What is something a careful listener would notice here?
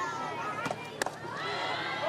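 A softball smacks into a catcher's mitt with a sharp pop.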